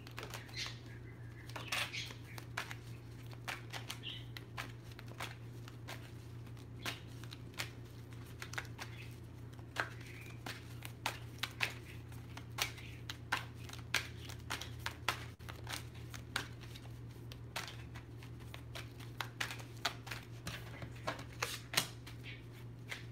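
Small objects click and tap as hands handle them close by.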